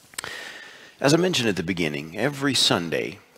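A young man speaks calmly into a microphone in a reverberant room.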